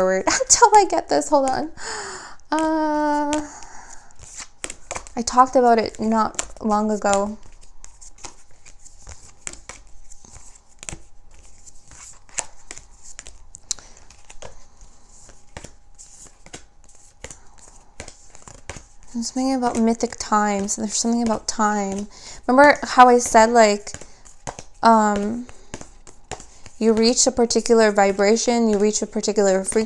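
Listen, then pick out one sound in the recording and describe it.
Cards shuffle and tap against each other.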